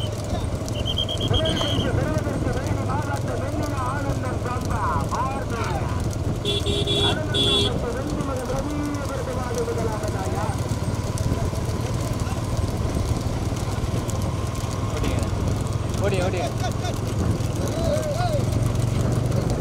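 Men shout loudly to drive bulls on.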